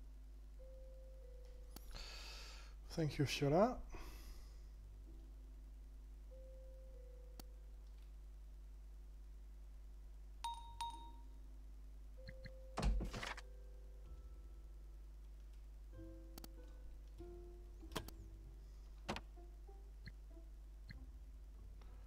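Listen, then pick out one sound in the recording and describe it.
Soft, gentle music plays steadily.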